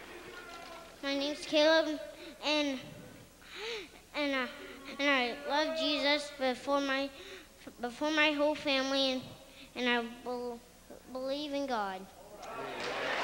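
A young boy speaks into a microphone in short phrases.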